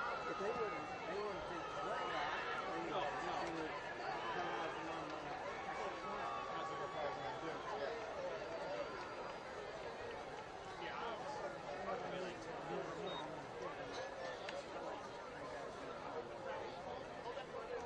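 A crowd in open-air stands chatters and cheers.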